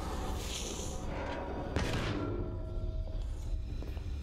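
A heavy door slides open with a hiss.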